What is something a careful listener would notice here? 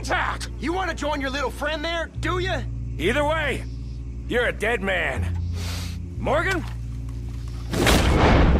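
A man speaks threateningly, close by.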